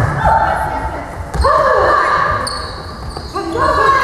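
A volleyball is struck with a slap.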